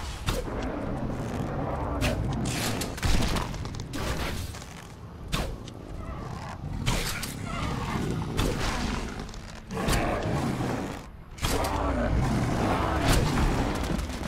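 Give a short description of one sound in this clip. Arrows are loosed from a bow with sharp snaps.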